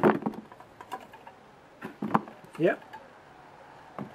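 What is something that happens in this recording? Potatoes clatter into a metal pan.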